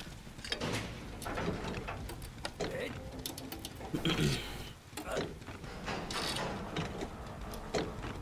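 A chest is rummaged with clattering and creaking.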